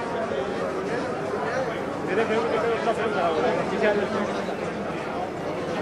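Several men talk loudly nearby.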